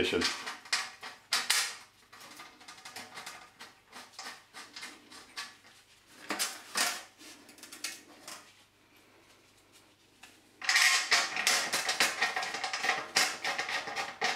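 A gloved hand scrapes and brushes across a metal mesh panel.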